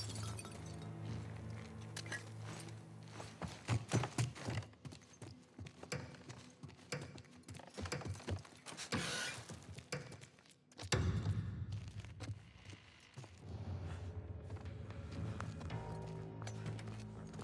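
Footsteps creak across a wooden floor.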